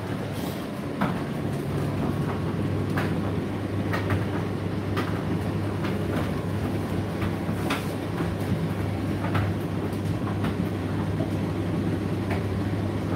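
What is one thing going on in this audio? Items knock and tap inside a tumble dryer's turning drum.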